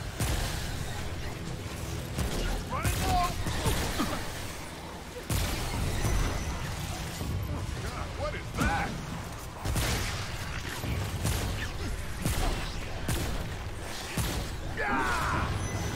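A man talks with animation through a headset microphone.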